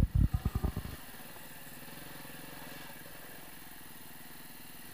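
A dirt bike engine runs steadily at low speed.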